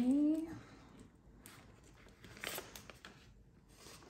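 Paper bills rustle as they are handled.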